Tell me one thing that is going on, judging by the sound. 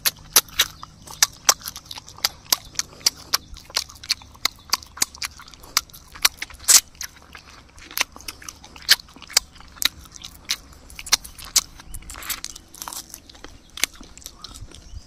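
A man crunches loudly on crisp food, close by.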